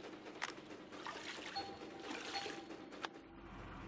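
Water pours into a bucket.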